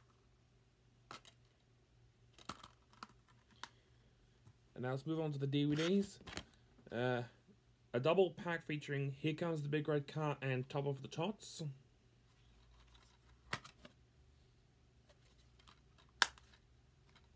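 A plastic case clicks and rattles in a man's hands.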